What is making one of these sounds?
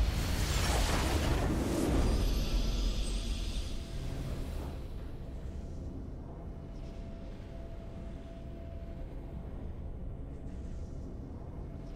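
A triumphant game fanfare plays loudly.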